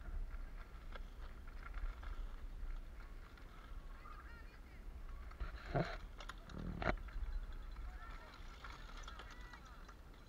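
A mountain bike rattles past close by on a dirt track.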